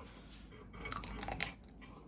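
A woman bites into a chocolate treat and chews.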